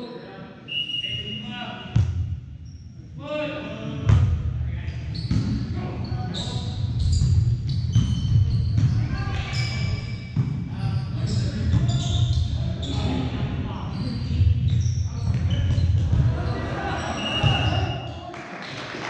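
Players' shoes squeak on the court.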